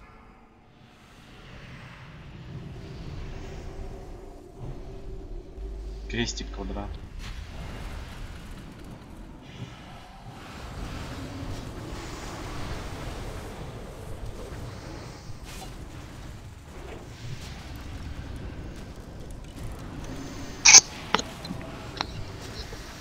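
Magic spells whoosh and crackle amid a battle.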